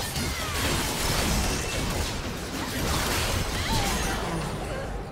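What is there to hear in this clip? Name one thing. Spell blasts crackle and burst in a fast fight.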